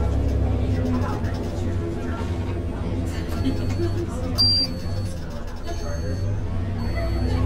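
A bus engine hums steadily at low pitch.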